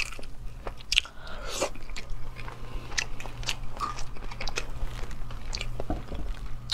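A young woman chews food with wet, crunchy mouth sounds close to a microphone.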